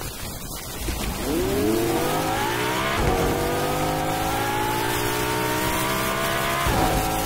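A car engine revs up and roars as the car speeds along a road.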